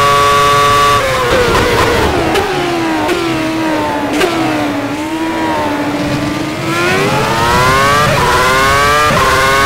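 A racing car engine drops in pitch with quick gear changes, then revs up again.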